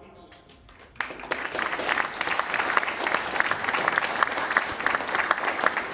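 A crowd applauds loudly in a large room.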